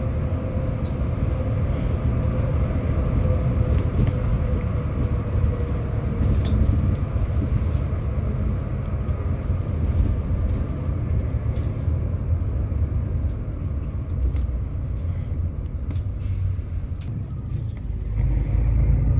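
The bus body rattles and clicks over the road.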